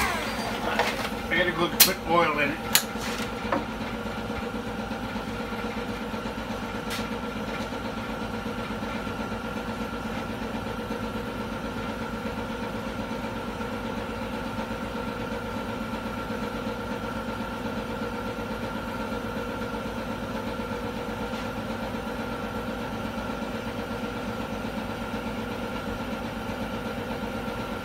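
An electric fan hums steadily nearby.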